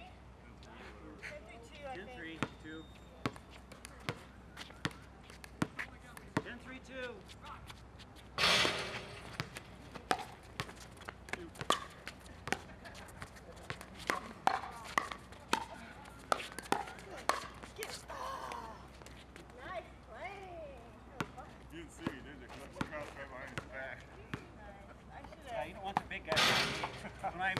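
Paddles hit a plastic ball with sharp pops, over and over.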